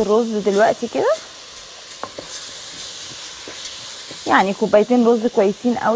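Dry rice pours and rustles into a pot.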